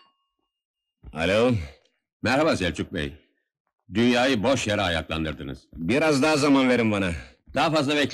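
A man speaks tensely into a telephone.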